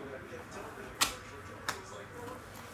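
Cardboard boxes knock together as they are handled.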